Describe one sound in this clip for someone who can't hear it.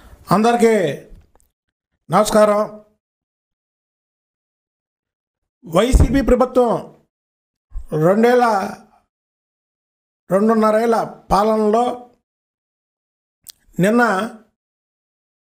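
A middle-aged man speaks into a microphone in short, deliberate phrases with pauses between them.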